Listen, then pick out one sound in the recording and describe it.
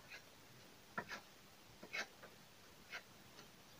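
A knife taps softly on a wooden cutting board.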